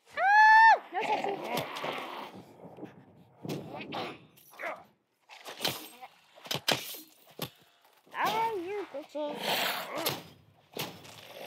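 Heavy blows land on zombies with wet, thudding hits.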